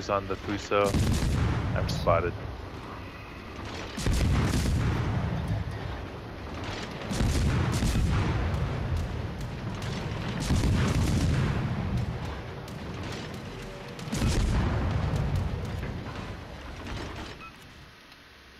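A warship's heavy guns fire in deep, booming salvos that rumble away.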